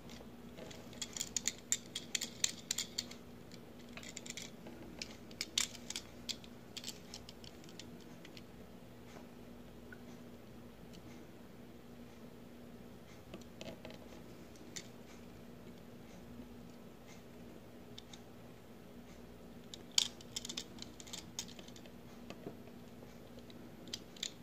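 Small plastic clicks and taps sound as fingers handle a toy car.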